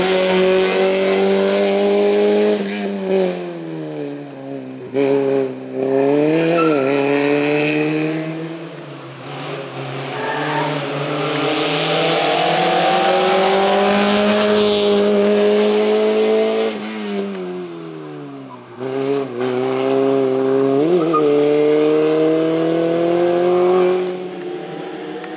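A rally car engine revs hard, rising and falling in pitch through gear changes.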